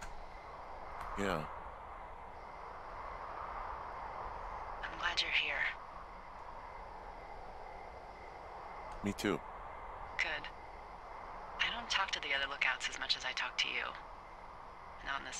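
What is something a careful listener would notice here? A young woman speaks close to a microphone in short bursts.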